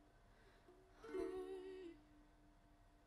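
A young woman sings briefly.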